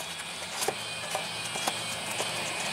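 A hand knocks and taps on a plastic cover.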